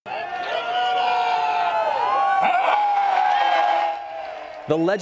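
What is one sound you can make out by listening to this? A crowd cheers and whistles outdoors.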